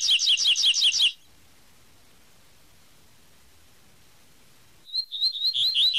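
A small songbird sings a fast, bright series of repeated high chirps, pausing in between.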